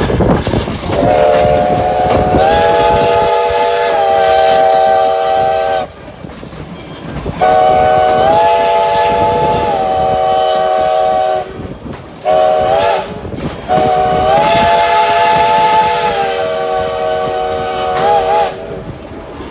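A steam locomotive's whistle blows several long chime blasts.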